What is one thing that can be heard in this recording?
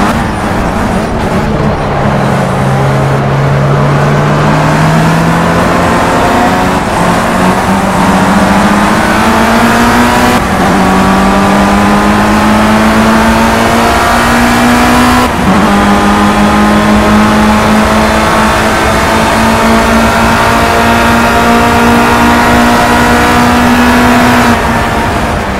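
A racing car engine roars loudly, climbing in pitch through gear changes.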